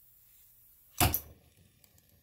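A torch ignites with a sharp pop.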